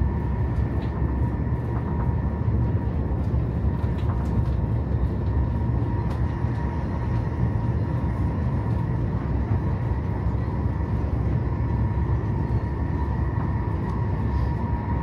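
A steady hum drones inside a train carriage.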